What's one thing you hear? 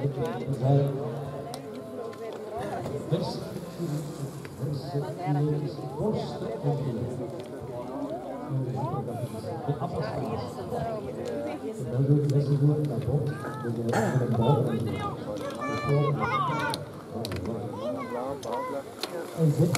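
Bicycles ride past close by on grass.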